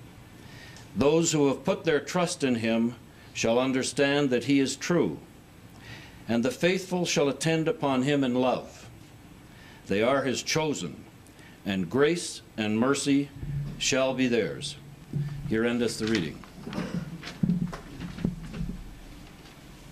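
An elderly man speaks slowly and formally into a microphone.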